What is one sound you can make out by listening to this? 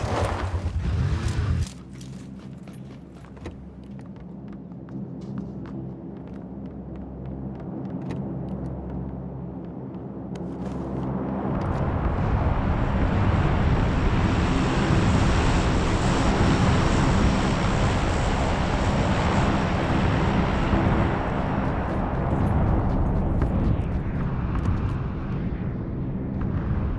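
Footsteps run quickly over ground and wooden floors.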